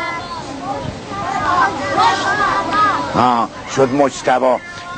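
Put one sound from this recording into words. A boy speaks aloud nearby.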